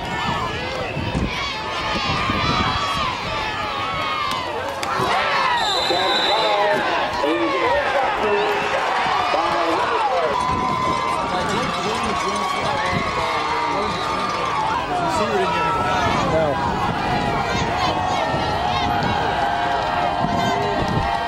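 A crowd of spectators talks and cheers outdoors.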